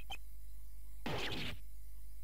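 A sharp swooshing effect sounds as a character recoils.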